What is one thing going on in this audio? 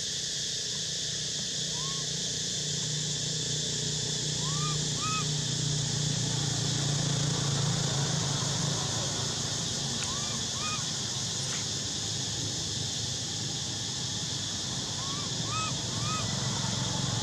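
A motorbike engine hums as it passes by on a nearby road.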